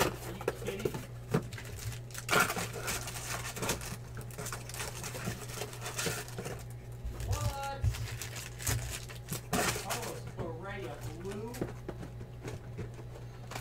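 Cardboard boxes scrape and knock as they are moved.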